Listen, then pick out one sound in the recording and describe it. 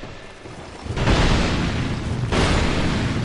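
Swords clash and strike with loud metallic blows.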